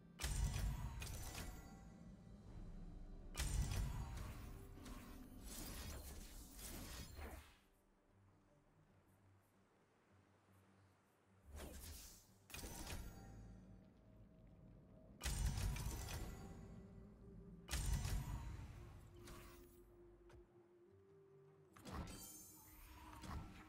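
Game spell effects whoosh and crash in bursts.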